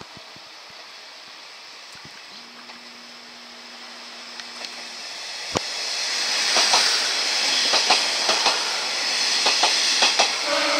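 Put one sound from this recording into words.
A train rolls into a station, growing louder as it passes close by.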